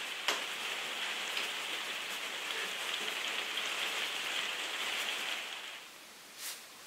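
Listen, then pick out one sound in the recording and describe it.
A paintbrush scrubs and scratches against canvas.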